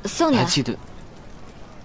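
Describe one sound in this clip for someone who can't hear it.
A young woman calls out briefly with animation, close by.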